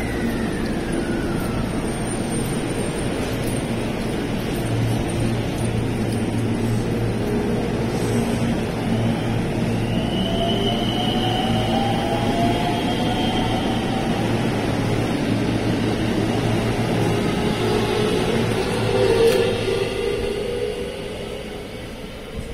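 A train pulls away close by with a loud rumble that fades.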